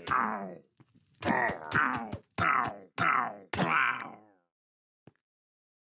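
A sword strikes a villager several times.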